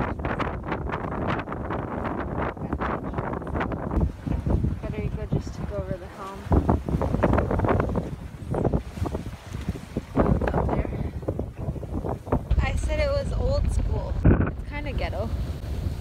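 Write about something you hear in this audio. A woman speaks close to the microphone in the wind.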